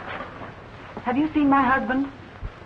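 A woman speaks with animation.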